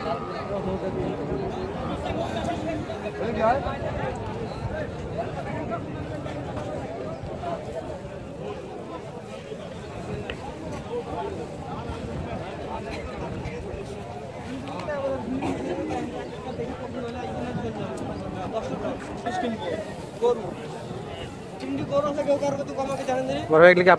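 A crowd of men chatter all around outdoors.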